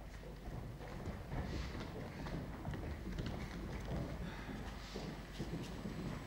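Footsteps shuffle and thud on a wooden floor as several people walk about.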